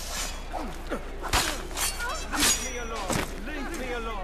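Swords clash and strike in a close fight.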